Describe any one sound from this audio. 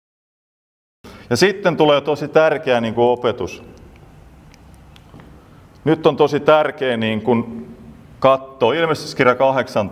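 A middle-aged man speaks calmly in an echoing hall.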